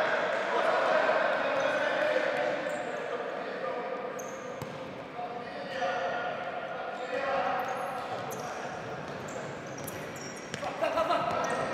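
A ball thuds as it is kicked, echoing in a large hall.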